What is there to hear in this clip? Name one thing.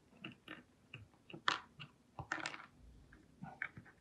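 Small plastic figures clack on a wooden table.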